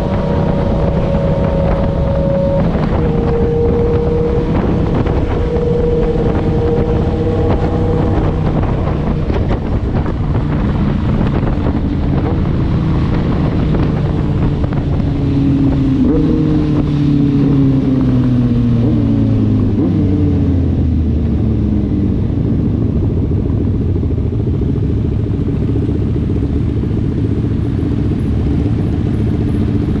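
Wind rushes loudly past, as if outdoors at speed.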